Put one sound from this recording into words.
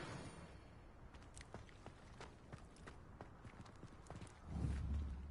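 Footsteps run on stone paving.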